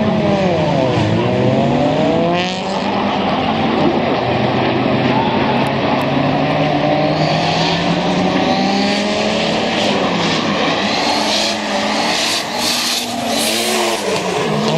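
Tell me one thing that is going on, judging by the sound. Car engines roar and rev hard, rising and falling in pitch.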